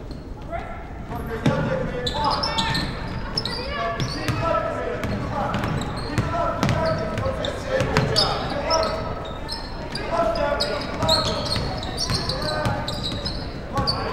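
Young women shout and call out to each other.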